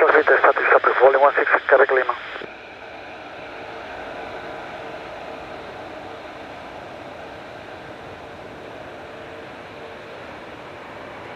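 A large jet airliner's engines roar steadily as it taxis away.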